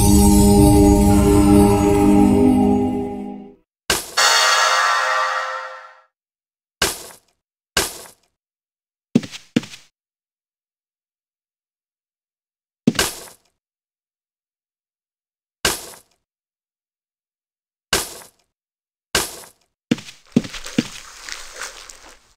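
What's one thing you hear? Short magical game sound effects burst out every few seconds.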